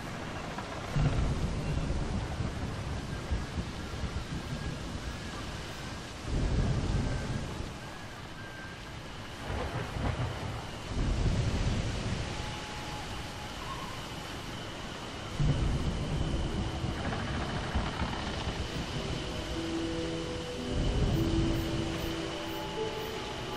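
Waves crash and splash against a ship's hull in bursts.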